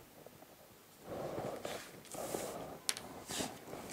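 Paper rustles and slides on a table.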